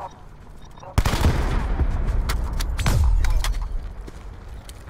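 A rifle fires rapid, loud shots.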